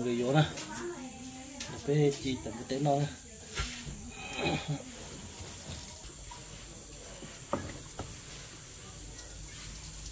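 Meat sizzles softly over glowing charcoal.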